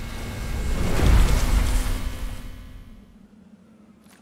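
A huge burst of snow roars and rumbles, then dies away.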